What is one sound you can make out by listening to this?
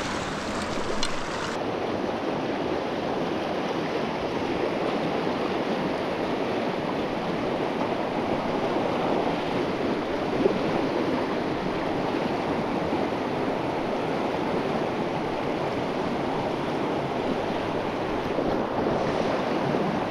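A fast river rushes and splashes over rocks close by.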